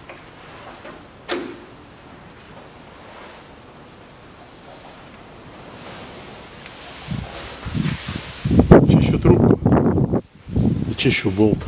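Metal parts under a car clunk as a hand shakes a steering joint.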